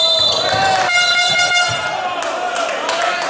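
A referee's whistle blows loudly.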